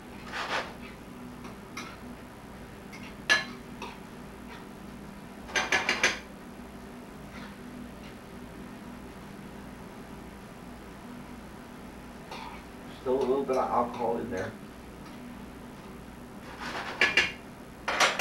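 A spatula scrapes and clatters against a frying pan.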